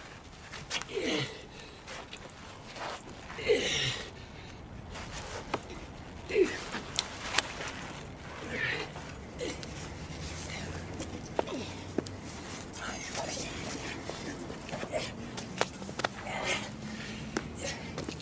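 A man grunts and exclaims with effort nearby.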